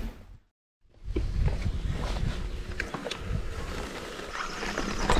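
Bicycle tyres rumble over grass.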